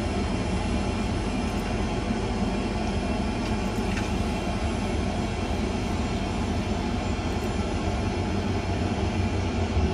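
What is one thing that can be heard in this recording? Aircraft engines roar steadily in a low drone.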